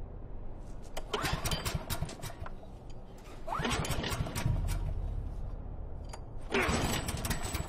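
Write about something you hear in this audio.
A generator engine sputters as its pull cord is yanked.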